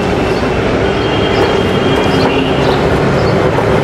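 Footsteps thud on a tin roof.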